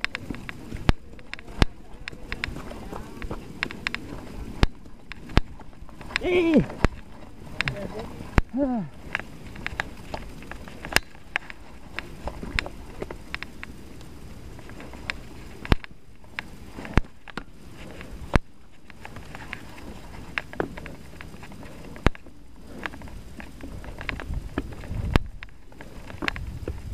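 Bicycle tyres roll and bump over rough dirt and grass.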